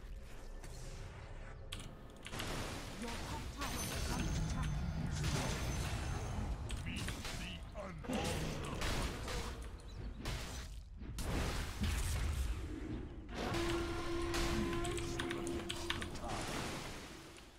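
Battle sound effects clash and crackle from a video game.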